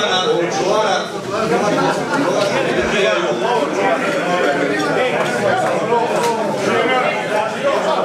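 Many men talk over one another in a crowded room.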